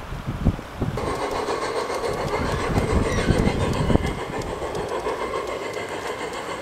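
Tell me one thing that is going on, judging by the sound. A small model train rumbles and clatters along its track.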